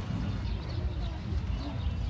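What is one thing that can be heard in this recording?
Men talk quietly a little way off, outdoors.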